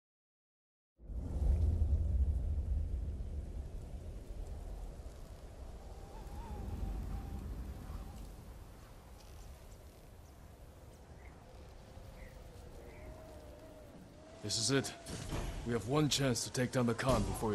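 Wind howls through a snowstorm, with a deep rumble.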